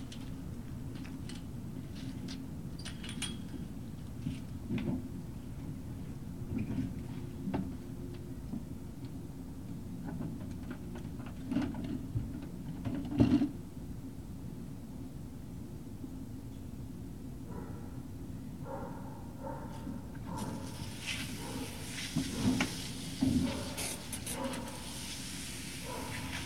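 Dogs rustle and scuffle through dry leaves.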